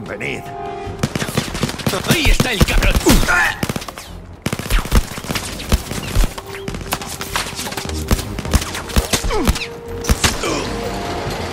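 A pistol fires loud shots in quick succession.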